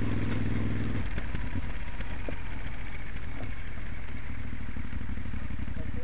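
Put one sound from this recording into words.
A Moto Guzzi Stelvio transverse V-twin motorcycle rolls off the throttle and slows.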